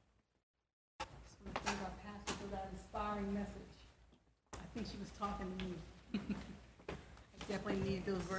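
A woman sings through a microphone in an echoing hall.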